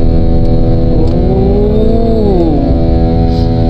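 A jet engine's whine swells and rises in pitch.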